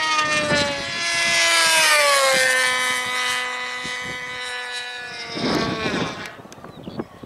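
A model airplane engine whines loudly overhead, its pitch dropping as it passes, then fades away.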